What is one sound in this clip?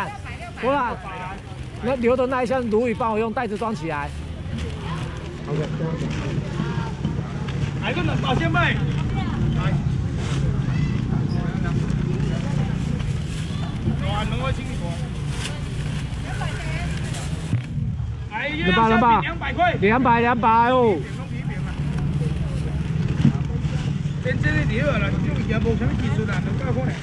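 A young man calls out loudly to customers, with animation.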